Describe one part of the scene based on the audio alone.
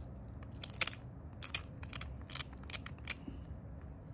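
Stone taps and scrapes sharply against stone in quick, uneven strokes.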